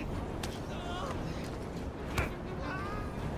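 Punches and blows land with heavy thuds.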